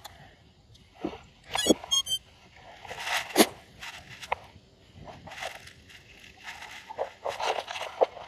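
Clothing and a strap rustle with handling close by.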